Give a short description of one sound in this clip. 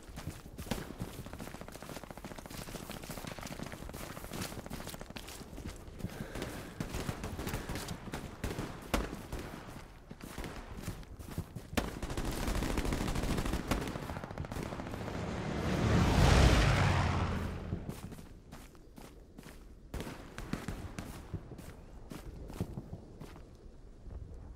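Footsteps rustle through grass and bushes.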